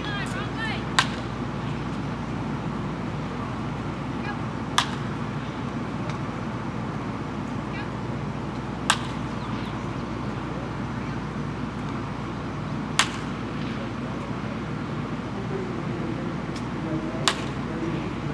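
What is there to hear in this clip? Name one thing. A metal bat sharply pings as it hits a baseball, several times.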